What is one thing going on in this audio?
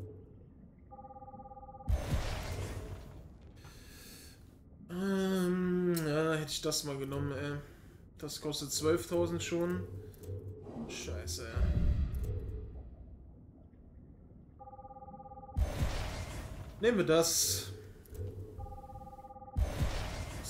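Short menu chimes beep as selections change.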